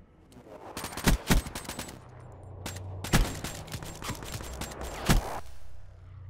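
Gunshots fire in sharp, loud bursts.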